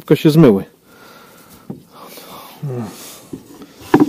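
A small wooden door knocks shut.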